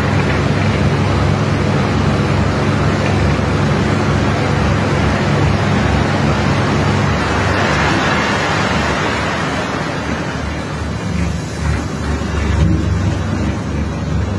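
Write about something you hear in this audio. A boat engine rumbles steadily nearby.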